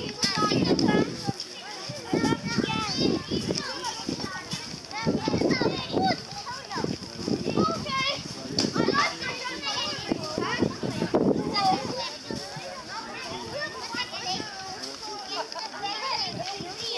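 Young children shout and chatter excitedly close by, outdoors.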